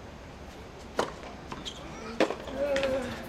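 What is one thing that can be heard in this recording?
A tennis ball is struck with a racket, with sharp pops.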